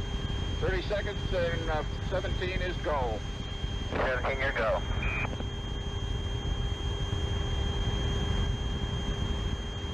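A rocket engine roars with a low, steady rumble.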